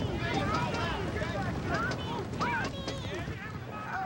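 A young girl shouts and cries out loudly.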